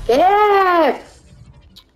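A video game character shatters with a loud, falling electronic tone.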